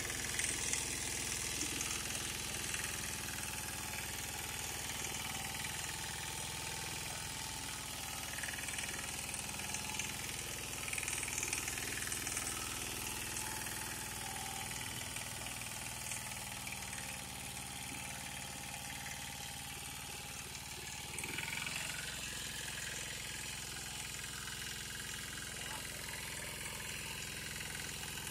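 Rotary tines of a power tiller churn through wet soil.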